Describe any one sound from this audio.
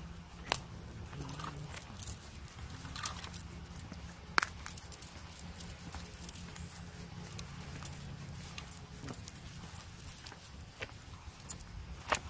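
A dog sniffs and rustles through grass.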